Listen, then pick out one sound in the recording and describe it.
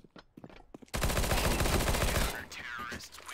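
A burst of automatic gunfire rattles loudly.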